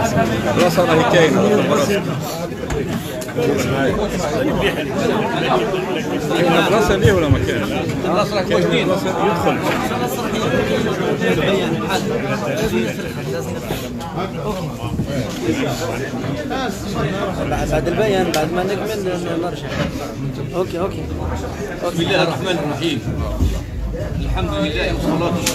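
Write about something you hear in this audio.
An elderly man speaks steadily through a microphone.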